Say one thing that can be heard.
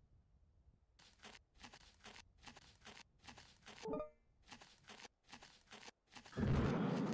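Heavy metal footsteps clank in a quick rhythm.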